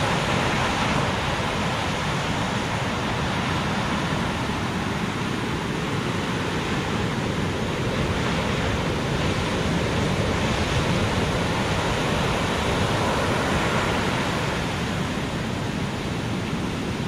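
Ocean waves crash and roar steadily.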